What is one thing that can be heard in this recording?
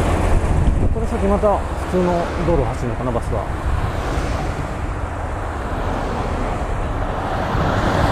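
Cars swish past one after another.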